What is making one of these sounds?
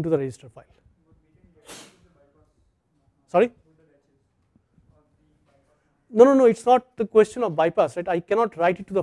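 A man lectures through a microphone, speaking calmly with pauses.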